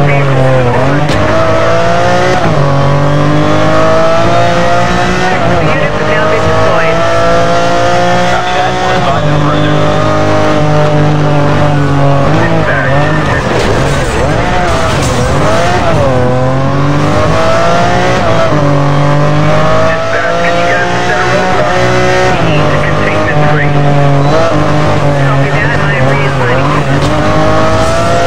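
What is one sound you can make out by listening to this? A sports car engine roars and revs up and down through the gears.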